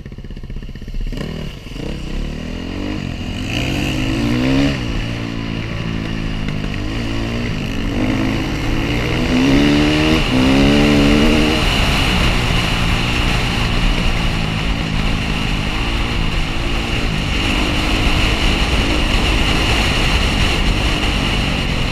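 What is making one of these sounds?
A dirt bike engine revs up and down close by as the bike rides along.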